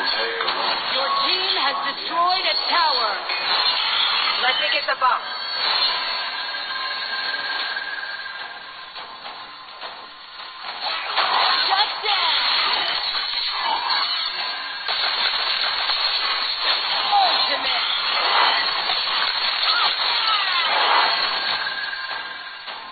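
Electronic spell effects whoosh and clash in a fast battle.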